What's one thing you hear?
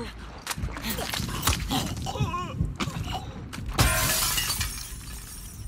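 Bodies thump heavily against the floor.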